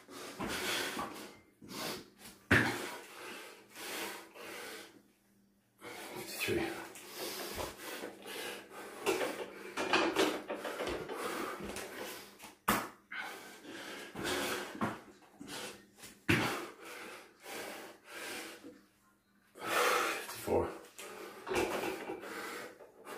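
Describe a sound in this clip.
A man breathes hard while exercising.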